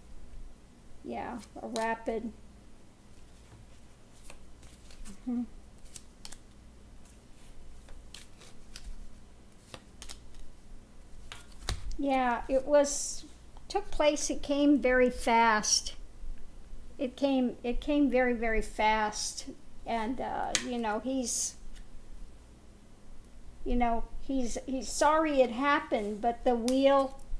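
A middle-aged woman speaks calmly and closely into a microphone, with pauses.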